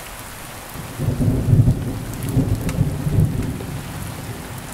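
Thunder rumbles low and heavy, then slowly dies away.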